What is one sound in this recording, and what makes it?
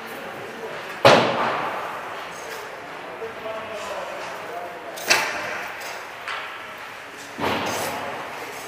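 Hockey pucks smack hard against a goalie's pads, echoing through a large rink.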